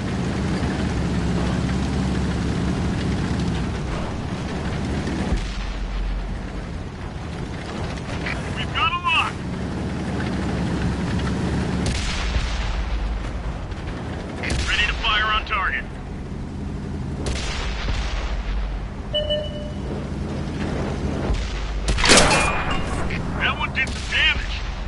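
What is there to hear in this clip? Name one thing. A tank engine rumbles low and steady as the tank drives.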